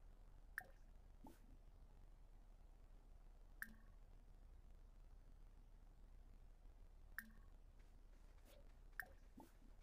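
Short, soft interface clicks sound now and then.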